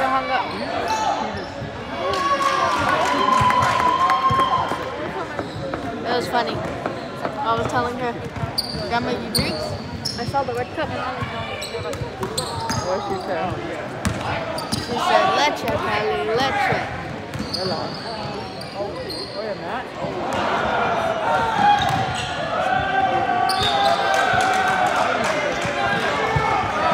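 Spectators nearby talk and call out.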